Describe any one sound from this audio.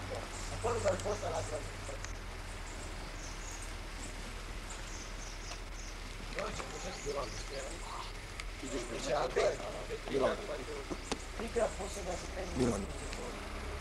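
A young man talks outdoors.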